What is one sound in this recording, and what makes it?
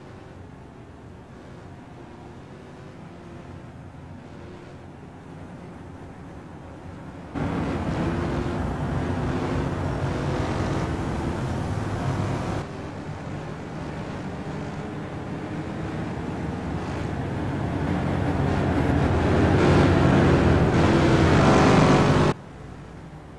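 Racing car engines roar and whine past at high speed.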